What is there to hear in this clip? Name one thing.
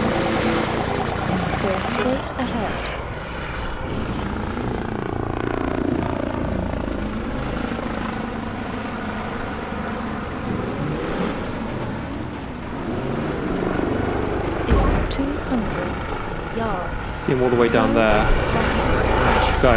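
A car engine hums as a car drives along.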